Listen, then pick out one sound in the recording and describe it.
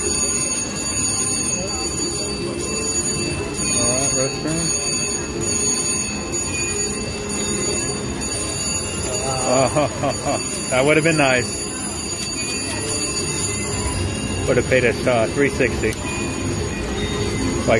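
A steady din of other gaming machines fills the room.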